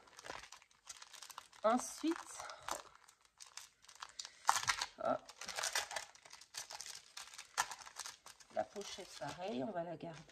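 A plastic sleeve crinkles and rustles as it is handled.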